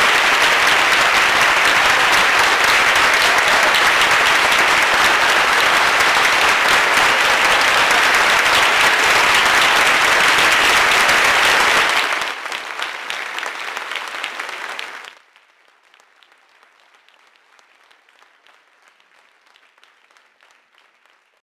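A large crowd applauds loudly in a big hall, then the clapping fades away.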